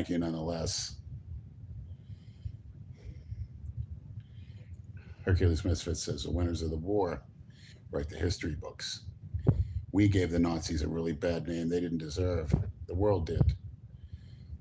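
A middle-aged man talks close to the microphone in a casual, animated way.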